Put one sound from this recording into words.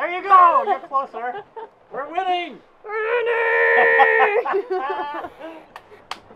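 A young woman laughs loudly and talks with amusement close by.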